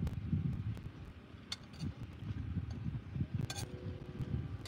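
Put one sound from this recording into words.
A spoon scrapes on a plate.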